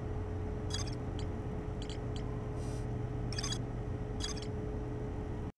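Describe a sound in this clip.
Short electronic menu blips chirp several times.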